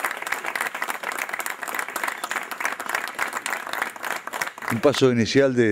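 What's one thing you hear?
People clap their hands in steady applause.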